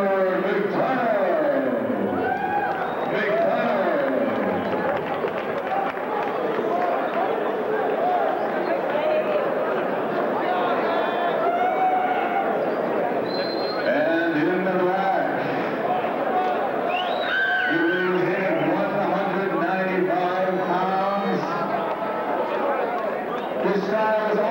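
A large crowd chatters loudly in an echoing hall.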